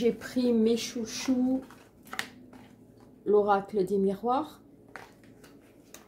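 Cards are shuffled and tap together.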